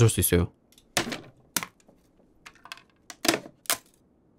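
Wood knocks and cracks as a crate is broken open.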